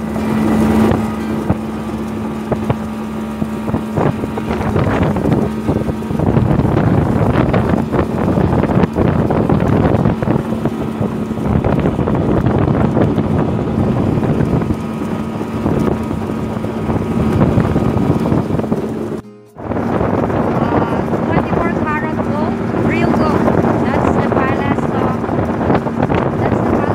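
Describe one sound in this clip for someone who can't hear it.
Water rushes and splashes against a moving boat's hull.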